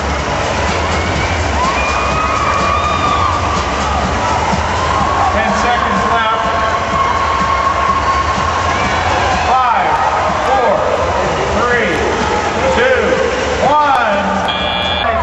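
Robot motors whine and rise and fall in pitch as the robots drive around.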